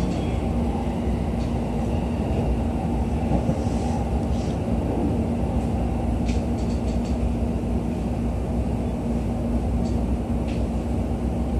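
Train wheels click and rattle over rail joints.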